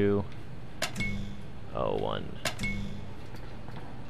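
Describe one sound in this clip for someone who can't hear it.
Keypad buttons click and beep as they are pressed.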